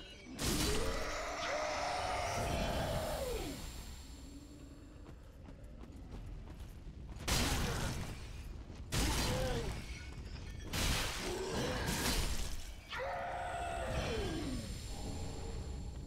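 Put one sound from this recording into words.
A monster lets out a long, wavering roar.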